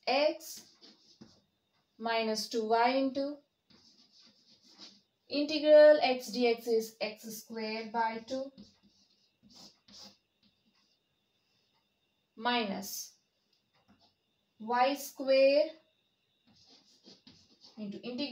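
A young woman explains calmly, close by.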